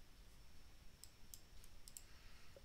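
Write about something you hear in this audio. Short electronic game sound effects click and chime.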